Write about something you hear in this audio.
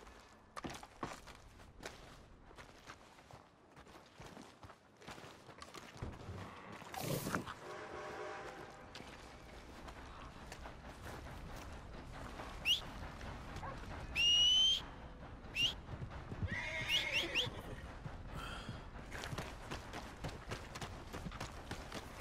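Footsteps crunch on a muddy dirt street.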